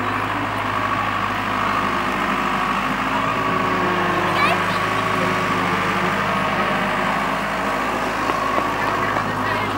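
Young children shout and chatter outdoors.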